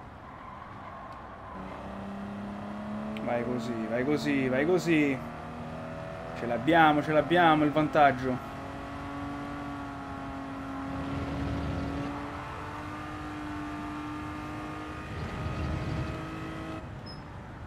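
A racing car engine hums and whines steadily, rising in pitch as it speeds up.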